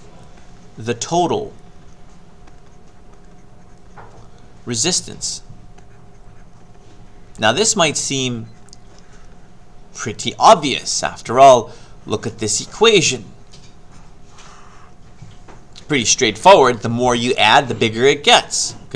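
A middle-aged man speaks calmly and clearly into a close microphone, in short phrases with pauses.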